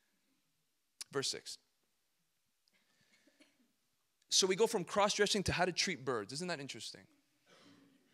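A young man speaks calmly into a microphone in short bursts with pauses.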